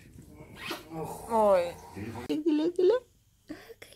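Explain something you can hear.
A baby coos and squeals close by.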